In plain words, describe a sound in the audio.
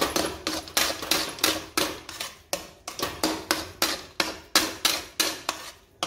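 A metal spatula scrapes rhythmically against a metal pan.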